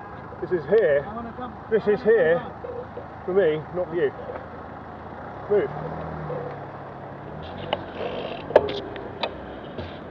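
A car engine hums close by.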